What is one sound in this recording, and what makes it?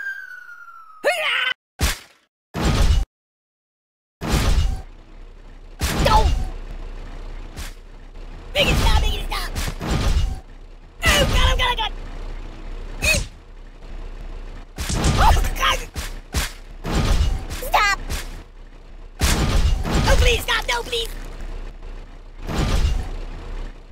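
A monster truck slams down onto a ragdoll with heavy crashing thuds.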